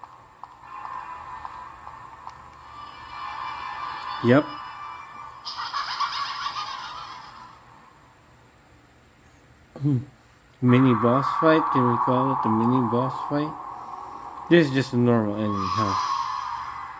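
A handheld game console plays game sounds through its small speaker.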